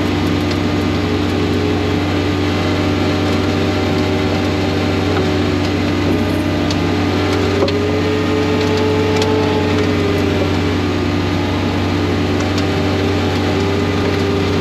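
Snow hisses as it is thrown from a snow blower chute.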